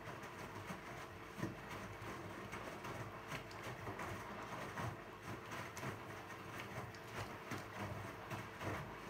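Laundry tumbles and thumps softly inside a washing machine drum.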